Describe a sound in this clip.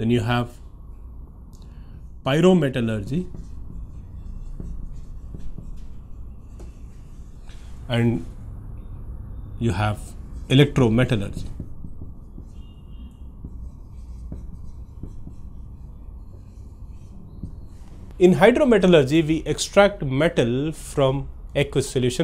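A man explains calmly, heard close through a microphone.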